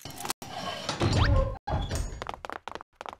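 A heavy door rumbles open with a deep grinding.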